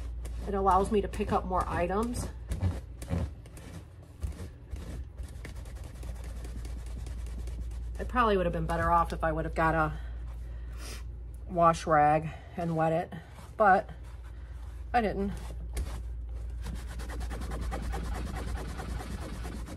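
Fabric rustles softly as it is folded.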